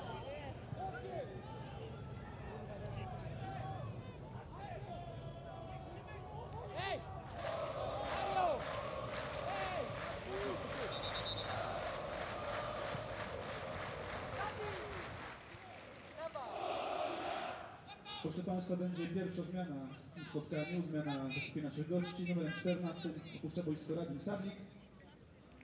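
A large crowd chants and cheers in an open stadium.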